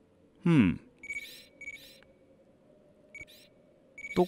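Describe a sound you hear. Short electronic menu blips sound now and then.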